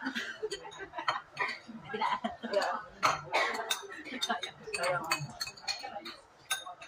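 Spoons clink against ceramic bowls.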